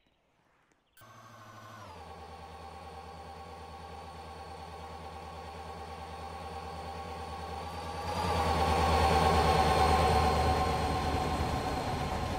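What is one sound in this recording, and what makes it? A train horn sounds a long, steady chord that grows louder as a train approaches.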